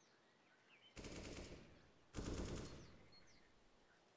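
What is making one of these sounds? A gun fires short loud bursts.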